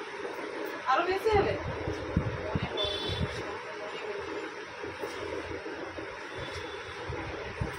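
A comb runs softly through long hair.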